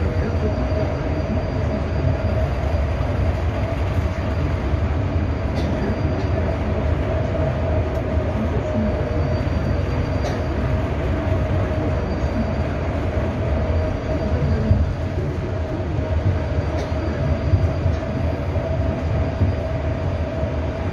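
A vehicle's engine hums steadily from inside as it drives.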